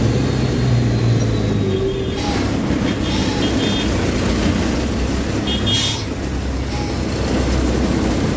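The cab rattles and vibrates as it rolls along.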